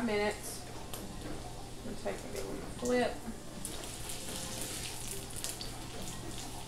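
Food sizzles and crackles in a frying pan.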